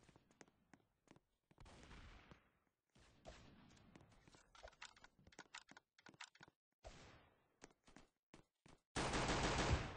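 A pistol fires a series of sharp shots.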